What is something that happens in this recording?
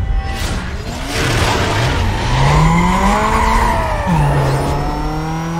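A sports car engine revs hard as the car pulls away.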